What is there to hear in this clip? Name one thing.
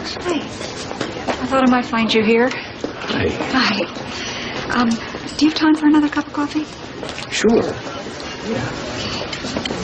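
A woman answers a man calmly.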